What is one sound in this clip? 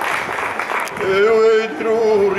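A group of men sing together in chorus outdoors.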